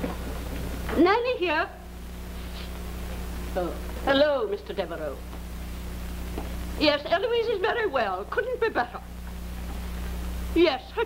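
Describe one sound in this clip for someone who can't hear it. A woman speaks with animation into a telephone.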